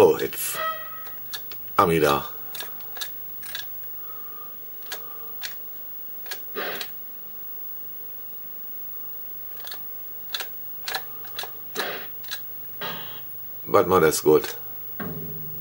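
Short electronic video game blips and beeps sound.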